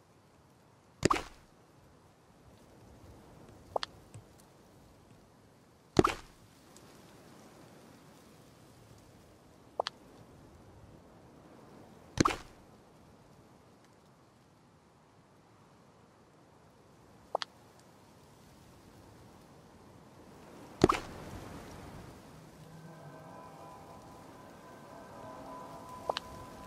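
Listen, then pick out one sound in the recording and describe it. Short game sound effects pop and thud now and then as items are placed.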